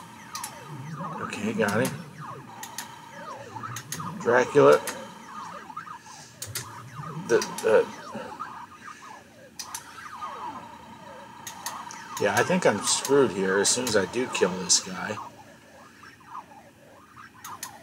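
Arcade game shots zap with quick falling beeps.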